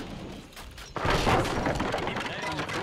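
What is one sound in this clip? A cannon blast booms and crackles.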